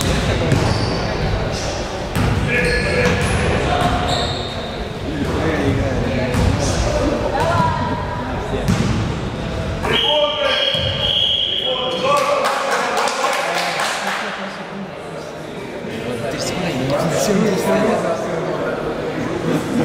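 Young spectators chatter and shout in a large echoing hall.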